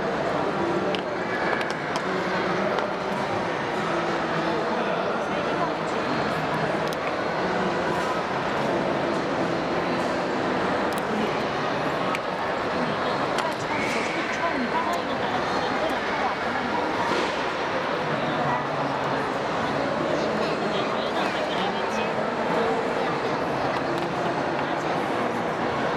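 Small plastic parts click and tap as hands handle them.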